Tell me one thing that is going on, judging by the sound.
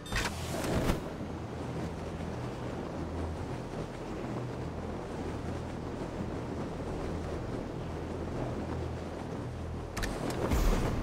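Wind rushes steadily past a falling car.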